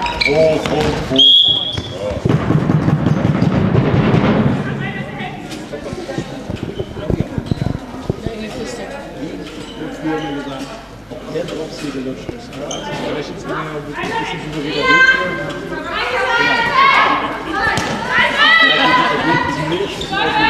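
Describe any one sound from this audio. Shoes squeak on a hall floor.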